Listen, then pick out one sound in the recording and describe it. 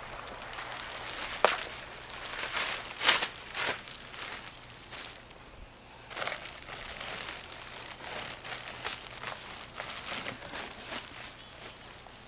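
Plastic ice bags crinkle and rustle close by.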